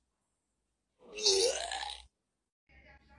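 A cat hisses and yowls close by.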